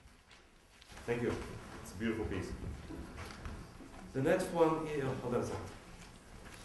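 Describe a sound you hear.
A man speaks calmly to an audience in a large echoing hall.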